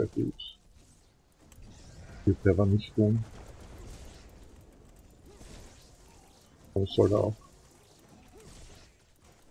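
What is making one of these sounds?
Magic blasts and weapons clash in a fight.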